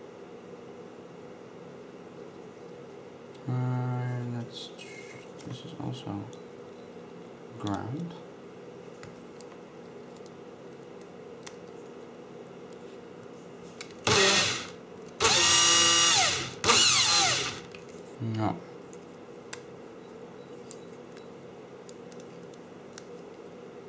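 Small clicks and rustles come as hands handle a circuit board and its wires.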